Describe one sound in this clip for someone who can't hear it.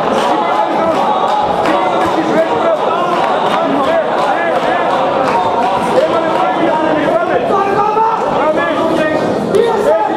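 Gloves and kicks thud against bodies.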